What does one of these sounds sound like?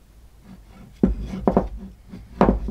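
Two pieces of wood knock against each other.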